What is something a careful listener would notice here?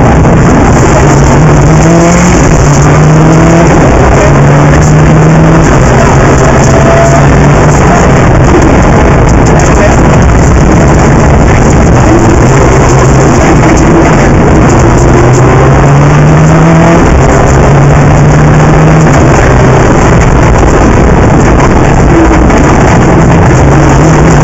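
A car engine roars loudly, revving up and dropping as gears change.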